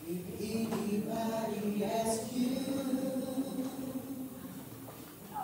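A congregation sings slowly in an echoing hall.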